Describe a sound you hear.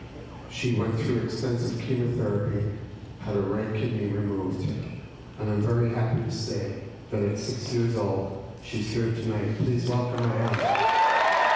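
A man speaks calmly into a microphone, heard through loudspeakers in a large hall.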